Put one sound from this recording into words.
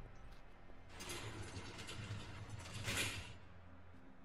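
A cell door slides and clanks shut.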